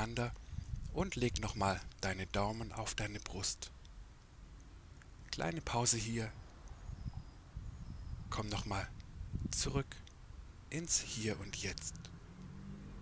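A man speaks calmly and slowly, close to a microphone.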